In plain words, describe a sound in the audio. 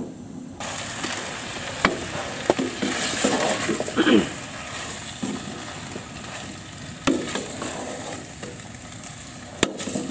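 A wooden spoon stirs food in a metal pot.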